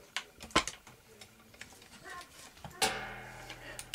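A small metal piece clinks and rattles in a hand.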